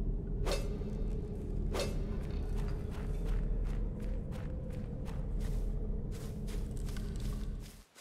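Quick footsteps crunch over the ground.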